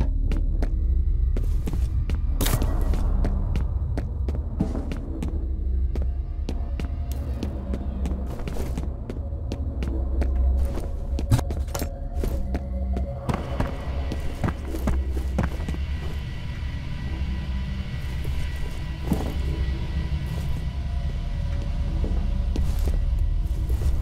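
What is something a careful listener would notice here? Footsteps thud on hard floors.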